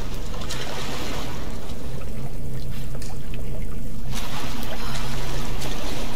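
Water splashes and sloshes as a woman wades through it.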